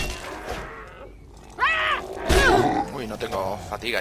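A sword swings and strikes.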